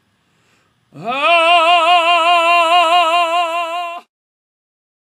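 A man sings one long, loud note with vibrato.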